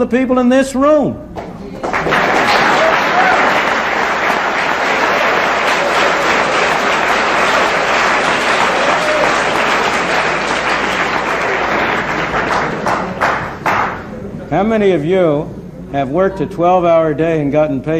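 An elderly man speaks calmly to an audience through a microphone.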